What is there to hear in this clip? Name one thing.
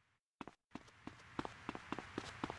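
Footsteps run quickly across a hard surface.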